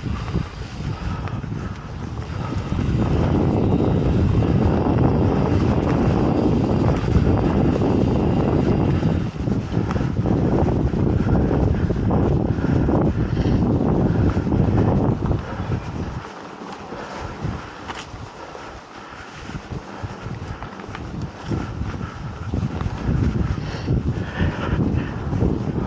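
A mountain bike rattles over bumps in a dirt trail.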